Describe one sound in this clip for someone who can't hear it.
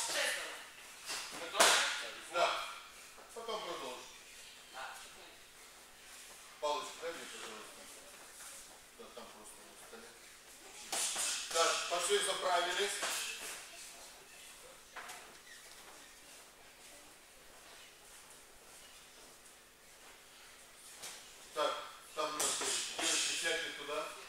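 A man calls out instructions.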